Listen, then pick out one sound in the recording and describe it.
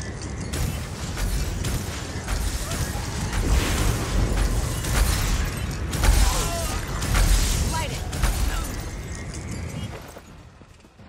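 Magic spells crackle and blast in a fierce battle.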